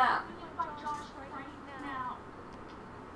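A young woman speaks urgently, close by.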